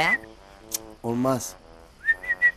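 A second man answers in a low, tense voice.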